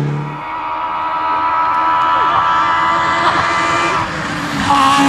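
A rally car engine roars loudly as the car speeds closer.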